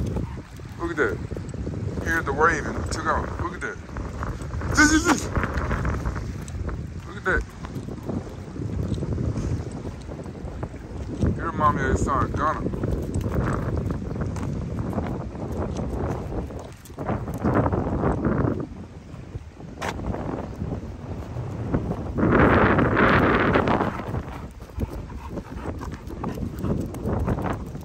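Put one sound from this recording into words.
A dog's paws patter on gravel.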